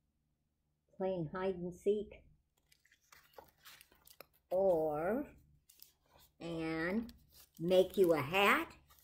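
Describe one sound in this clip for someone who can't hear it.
An elderly woman reads aloud calmly, close by.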